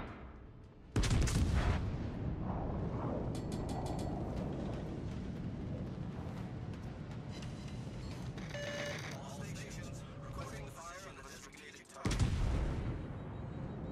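Heavy naval guns fire with deep booming blasts that rumble away.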